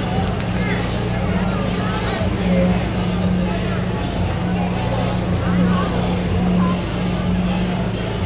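A crowd of men and women chatters close by, outdoors.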